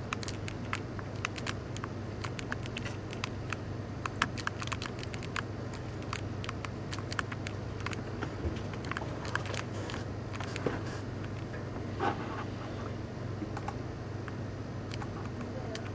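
A handheld game plays quick clicking sound effects.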